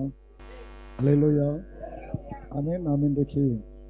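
A man speaks slowly into a microphone.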